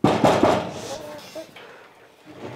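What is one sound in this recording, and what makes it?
A metal door creaks and rattles open.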